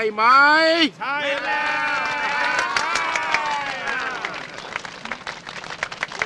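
A large crowd cheers and shouts excitedly.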